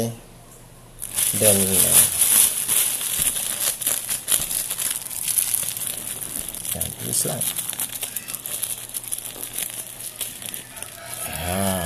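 A plastic bag crinkles and rustles as it is twisted and tied.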